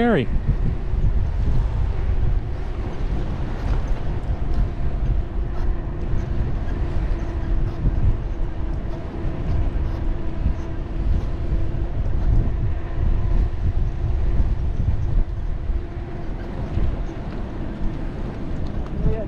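Wind buffets the microphone outdoors in a steady rumble.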